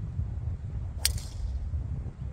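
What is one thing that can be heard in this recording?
A driver smacks a golf ball with a sharp crack.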